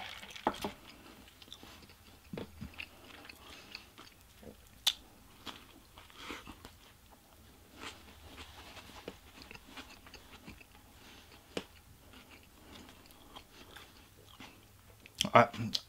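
A man chews food close by with soft smacking sounds.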